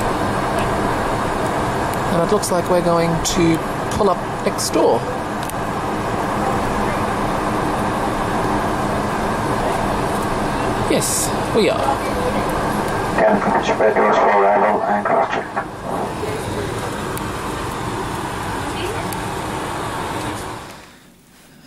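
Jet engines hum and roar steadily, heard from inside an aircraft cabin.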